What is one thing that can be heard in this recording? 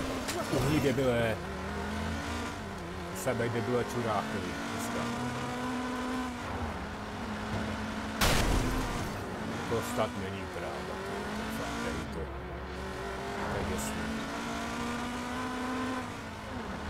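A sports car engine roars and revs up and down through gear changes.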